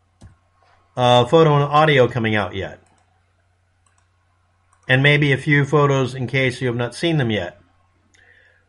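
A middle-aged man speaks calmly and close to a microphone.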